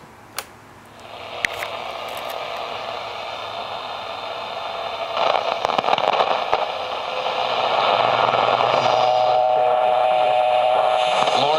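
A radio hisses and crackles with static while its tuning dial is turned.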